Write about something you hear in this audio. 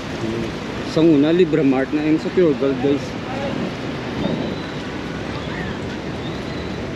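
Traffic murmurs along a busy street outdoors.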